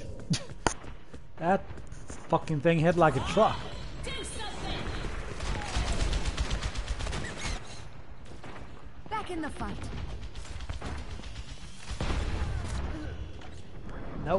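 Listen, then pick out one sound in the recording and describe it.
Gunshots crack rapidly in quick bursts.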